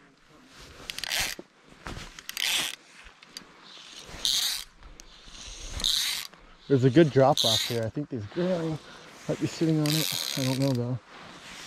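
A fly line swishes through the air in repeated casts.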